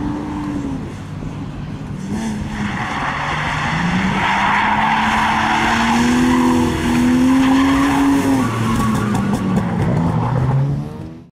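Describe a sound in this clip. Tyres screech loudly as a car slides sideways.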